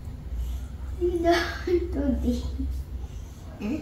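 A young girl speaks close by in a high voice.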